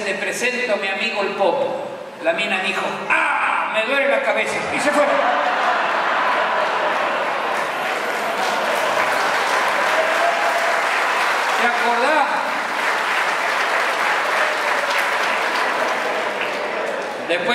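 A man speaks loudly through a microphone over loudspeakers in a large echoing hall.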